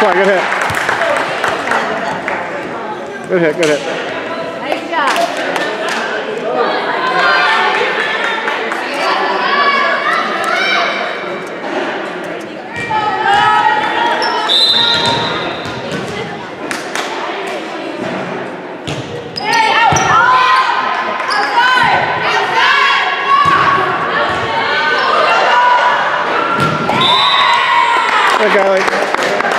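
Young women shout and cheer loudly in an echoing hall.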